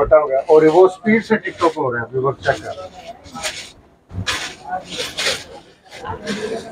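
Stiff fabric rustles as a man handles it.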